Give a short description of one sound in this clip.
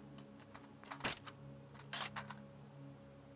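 A rifle's metal parts click and clack as it is handled.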